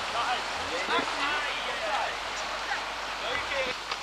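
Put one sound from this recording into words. White water rushes loudly over rapids.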